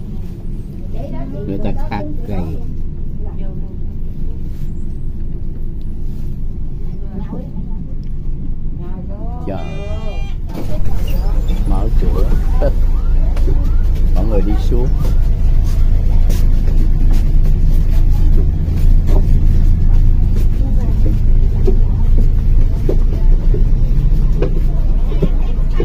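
Adult men and women talk among themselves nearby.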